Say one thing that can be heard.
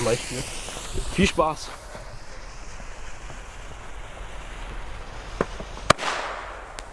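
A firework fizzes and hisses on the ground.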